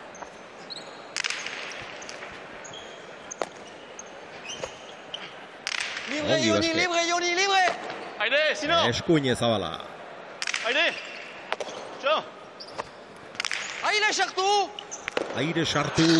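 A hard ball smacks sharply against a wall again and again, echoing in a large hall.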